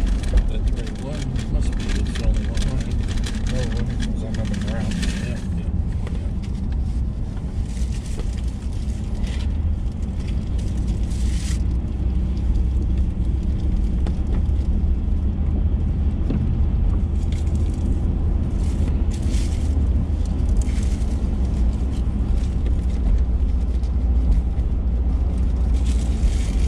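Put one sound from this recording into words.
A car engine hums steadily from inside while driving.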